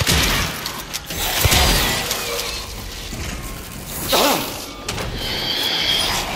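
A flock of birds flutters and flaps away.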